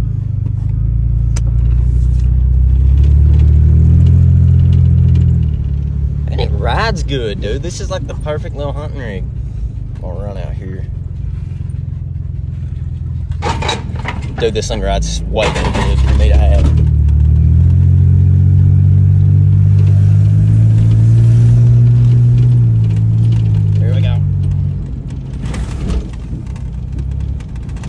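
A vehicle engine rumbles and revs up and down.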